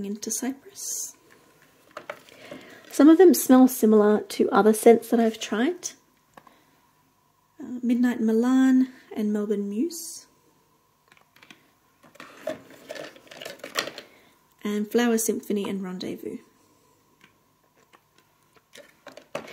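Small cardboard boxes are picked up and set down with soft taps.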